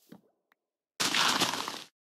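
A shovel digs into loose dirt.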